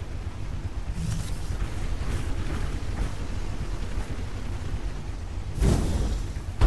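Heavy metal footsteps clank on grass.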